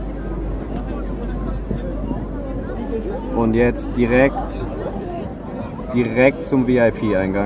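A band plays live music through loudspeakers outdoors.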